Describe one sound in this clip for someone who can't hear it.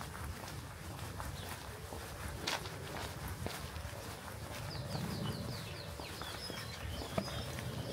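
Footsteps scuff along a paved path outdoors.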